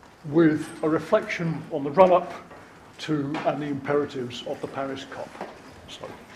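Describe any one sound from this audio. An elderly man speaks calmly through a microphone in a large room.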